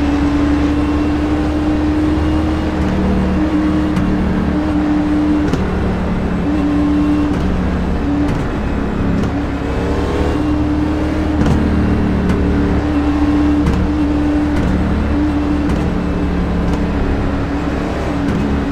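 A race car engine drones steadily at low speed.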